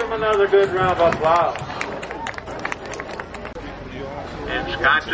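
A man speaks with animation over a loudspeaker, echoing outdoors.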